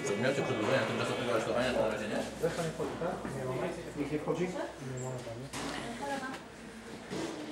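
Several men and women talk over one another close by.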